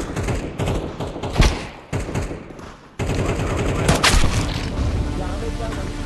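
Gunshots crack sharply nearby.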